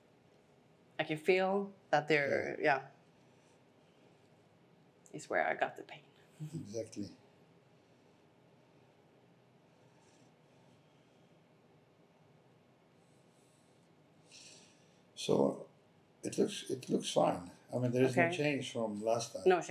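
A middle-aged man talks calmly and closely.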